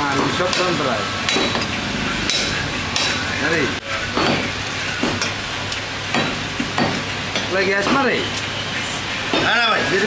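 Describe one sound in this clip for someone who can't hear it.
A cleaver chops through meat and bone onto a wooden block with sharp thuds.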